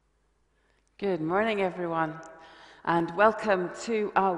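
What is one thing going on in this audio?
An older woman speaks calmly and clearly, close by.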